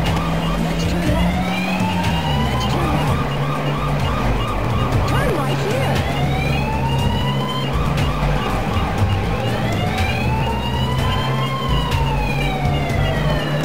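An ambulance siren wails, rising and falling.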